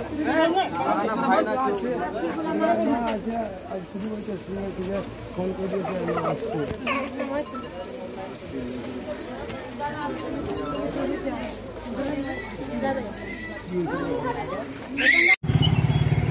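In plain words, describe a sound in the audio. Several men talk over one another outdoors in a crowd.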